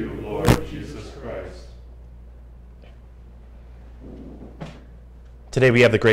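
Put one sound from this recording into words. A man speaks calmly through a microphone in a small echoing room.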